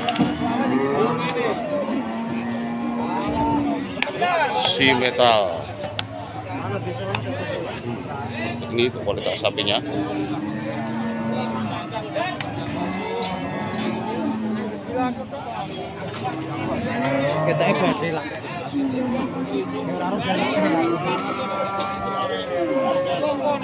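Many men talk loudly all around outdoors.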